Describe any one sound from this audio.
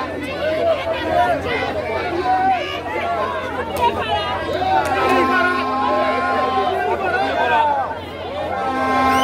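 A man speaks loudly through a microphone to a crowd outdoors.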